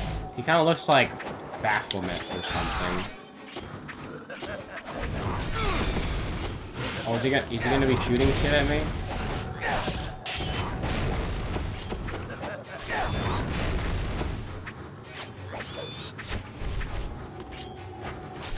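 Blades swish and clang in a fast fight.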